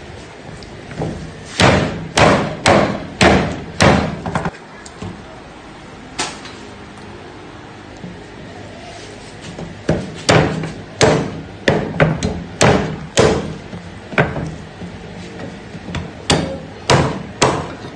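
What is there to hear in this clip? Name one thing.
A cleaver chops through meat onto a wooden block with sharp thuds.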